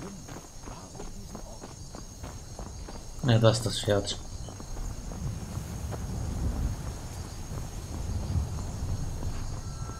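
Footsteps crunch on a stone path.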